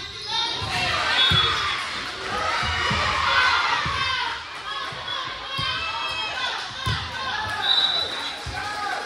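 Shoes squeak on a hard floor in a large echoing gym.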